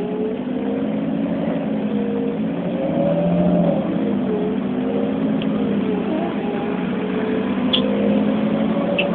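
Rain patters on a window.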